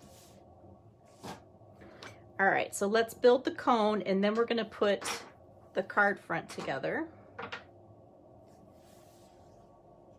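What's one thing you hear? Paper cards slide and rustle on a tabletop.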